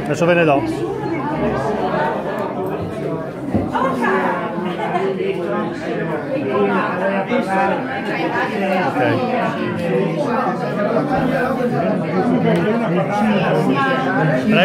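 Several men and women chatter nearby at once.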